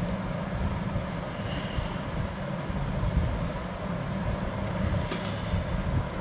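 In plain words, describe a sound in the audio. Metal food containers clink together.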